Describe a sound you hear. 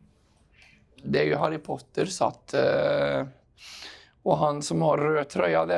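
A middle-aged man talks calmly, close to a microphone.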